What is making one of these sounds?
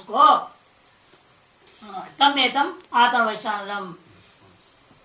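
A man recites a chant in a clear, resonant voice.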